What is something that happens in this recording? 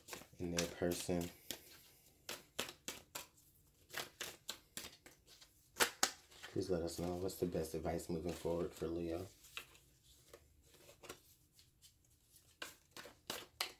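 Playing cards rustle and flick as they are shuffled by hand.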